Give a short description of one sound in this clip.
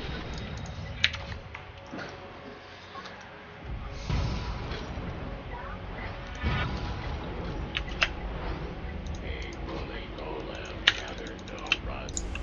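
Short chimes and clicks from a video game ring out.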